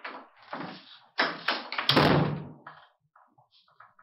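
A wooden door shuts.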